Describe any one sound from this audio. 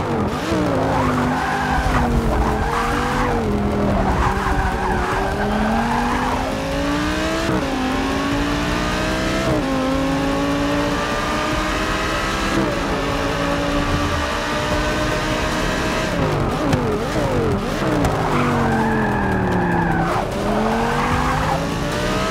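Tyres squeal through tight corners.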